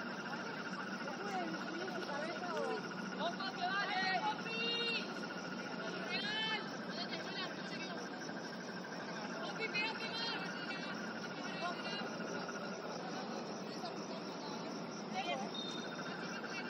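Young women shout to each other across an open outdoor pitch.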